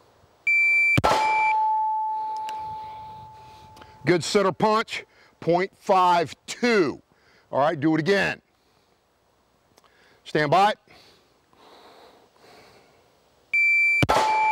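A pistol fires a sharp shot that rings out outdoors.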